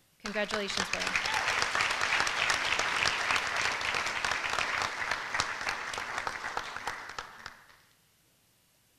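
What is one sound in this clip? An audience claps and applauds in a large hall, then the applause fades out.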